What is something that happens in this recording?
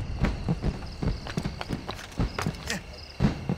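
Heavy footsteps thump quickly on a roof.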